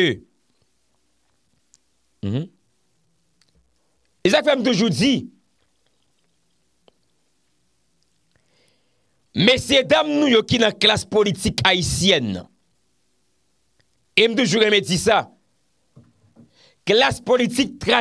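A young man speaks with animation into a close microphone, in short bursts with pauses.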